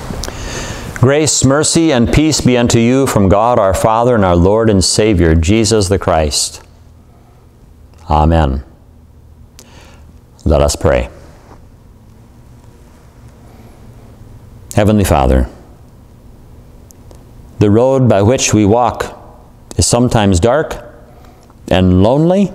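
A middle-aged man speaks calmly through a microphone, pausing between phrases.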